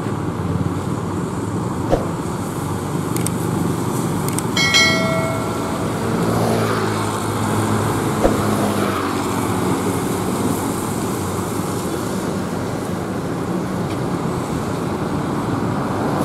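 A diesel coach bus rumbles as it drives past.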